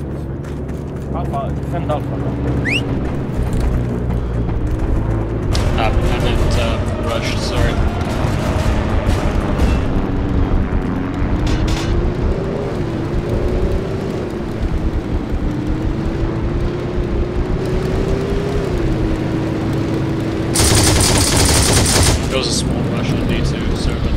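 An armoured vehicle's engine drones and changes pitch as it drives.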